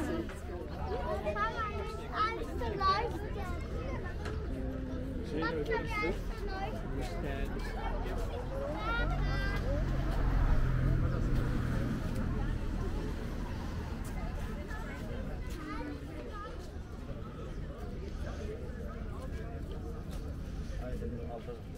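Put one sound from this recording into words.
Men and women chat nearby outdoors in a lively murmur.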